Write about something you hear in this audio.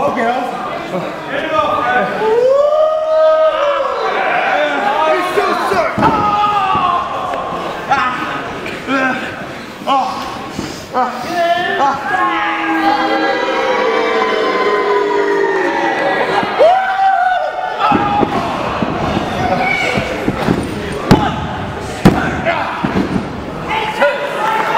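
A crowd chants and cheers.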